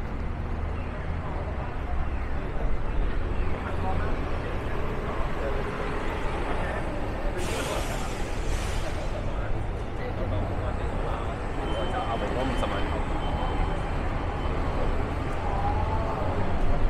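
Footsteps of passersby tap on the pavement.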